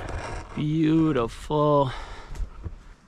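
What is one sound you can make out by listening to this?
A young man speaks close by, with animation.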